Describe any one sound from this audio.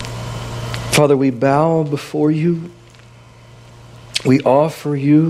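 A man speaks slowly through a microphone in an echoing hall.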